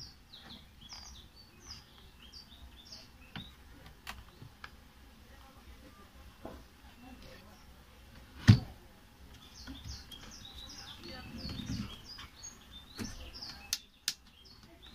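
The plastic housing of an electric planer clicks and knocks as it is handled and taken apart.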